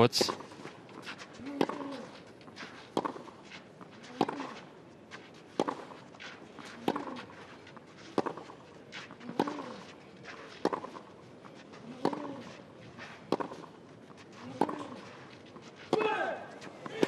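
A tennis ball is struck back and forth with sharp, regular pops.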